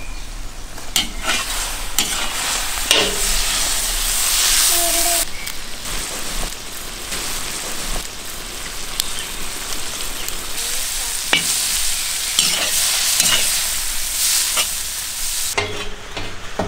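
Food sizzles in a cast-iron cauldron.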